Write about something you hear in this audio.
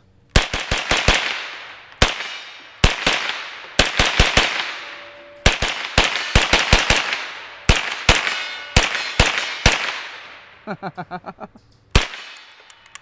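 Rapid gunshots fire in quick bursts outdoors, each one echoing away.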